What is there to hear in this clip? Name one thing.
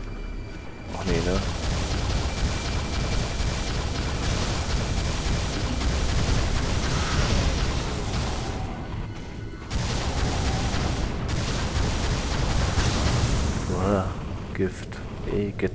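Rapid gunfire rattles and blasts.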